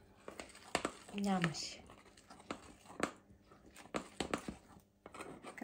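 A fork scrapes and clinks against a ceramic bowl while stirring flour.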